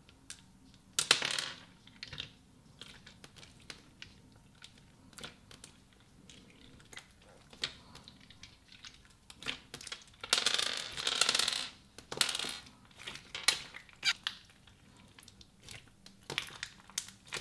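Sticky slime squishes and crackles as hands knead it.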